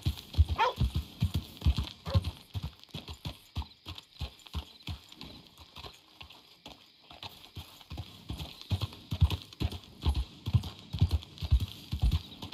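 A horse's hooves thud steadily on a dirt road at a walk.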